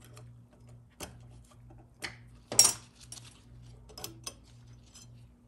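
Small metal parts click and clink.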